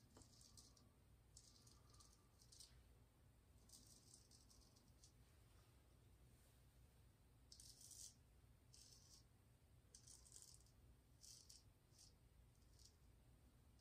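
A razor scrapes through stubble in short, crisp strokes, close by.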